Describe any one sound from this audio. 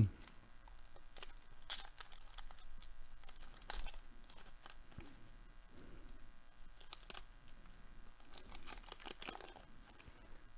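A foil wrapper crinkles and tears.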